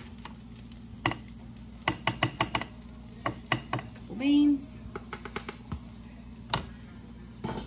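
A metal utensil clinks and scrapes against a pan.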